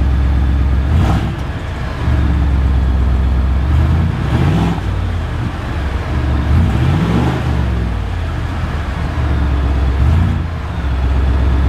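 A truck engine revs briefly several times.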